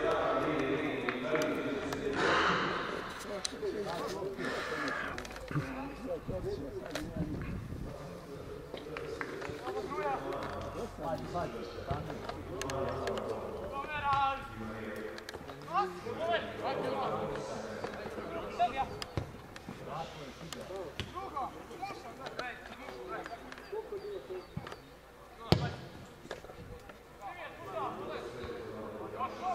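Young men shout and call to each other across an open pitch outdoors.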